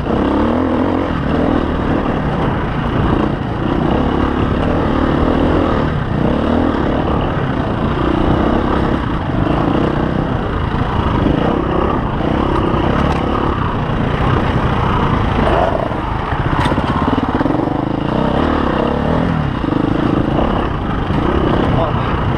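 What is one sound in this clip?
A dirt bike engine revs loudly up close, rising and falling.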